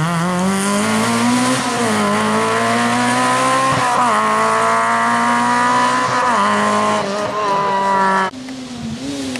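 A small rally car's engine revs hard as it speeds away up the road.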